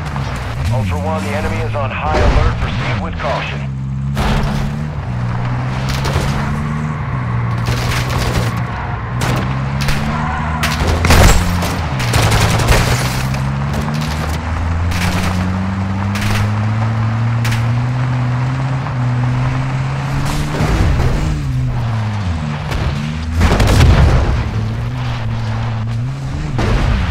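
A car engine hums and revs steadily, rising and falling in pitch.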